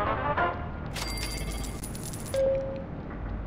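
A short bright electronic chime rings.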